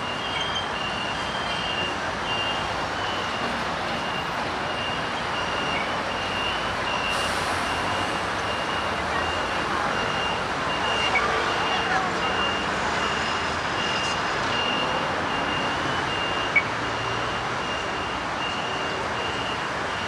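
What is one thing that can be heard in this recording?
A crossing signal beeps in a steady rhythm.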